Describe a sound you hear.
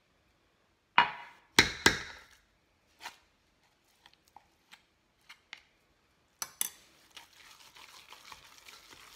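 A wooden spoon stirs and mashes a thick mixture in a metal bowl.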